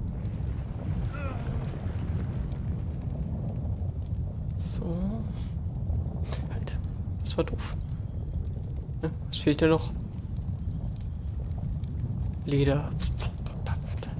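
A young man speaks casually into a close microphone.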